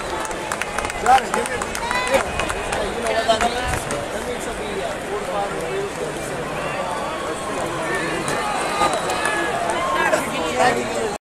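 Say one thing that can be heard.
Rain patters steadily on an umbrella.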